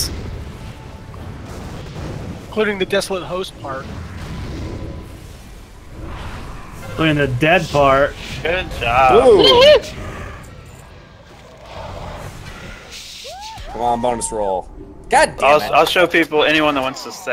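Magic spells whoosh and crackle in a battle.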